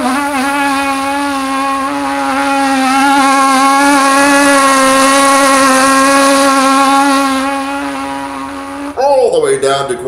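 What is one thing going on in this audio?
A trumpet plays one long, steady note up close.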